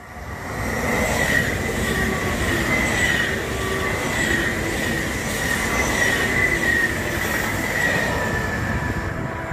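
Train wheels squeal thinly on the rails.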